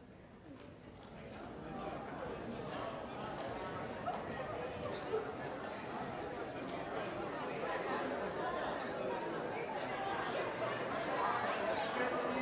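An audience murmurs and chatters.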